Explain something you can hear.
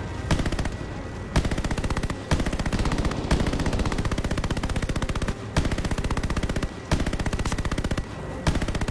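Machine guns fire in rapid, repeated bursts.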